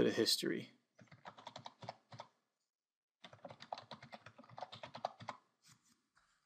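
Keys clatter as someone types quickly on a keyboard.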